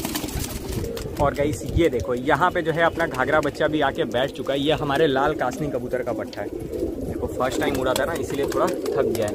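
Birds chirp and twitter sharply nearby.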